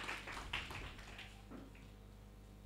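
Plastic wrapping rustles in people's hands.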